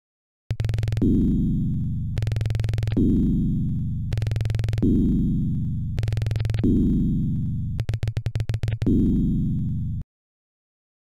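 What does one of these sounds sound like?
Electronic game tones buzz and chime in bursts as a score counts up.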